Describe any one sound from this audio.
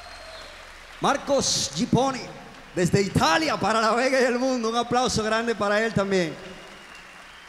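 A man sings into a microphone in a large hall.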